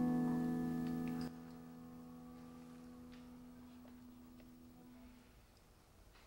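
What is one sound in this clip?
A piano chord rings out and slowly fades.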